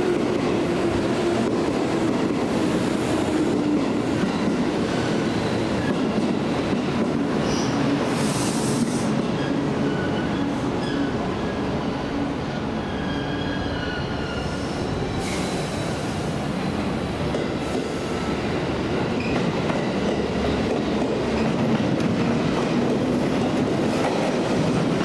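An electric express train approaches, rumbling over the rails.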